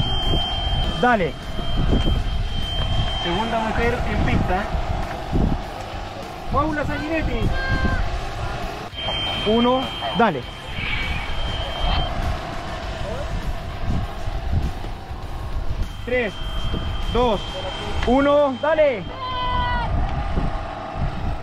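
A man shouts encouragement nearby.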